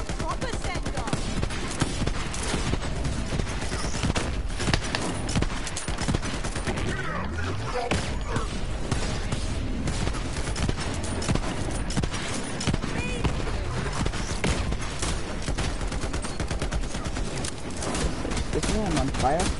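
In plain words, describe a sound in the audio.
Rapid gunfire crackles from a video game.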